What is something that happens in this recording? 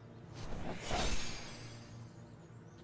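A magical blast whooshes with a bright shimmer.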